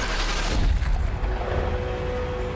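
A rifle shot cracks and echoes.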